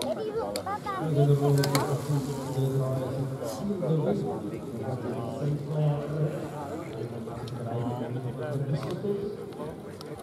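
A man shouts loudly nearby, cheering through cupped hands.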